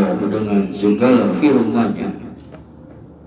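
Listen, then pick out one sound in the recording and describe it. An older man speaks loudly and close into a microphone.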